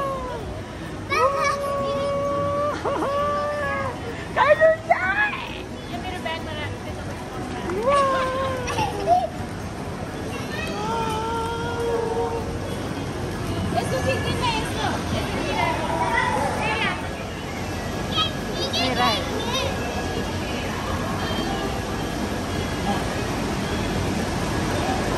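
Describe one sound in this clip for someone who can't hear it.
Young children chatter and call out around the room.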